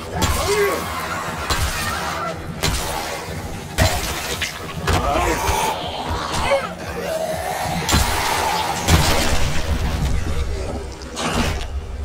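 Monsters growl and snarl close by.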